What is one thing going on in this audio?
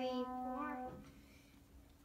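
A piano note rings out and stops.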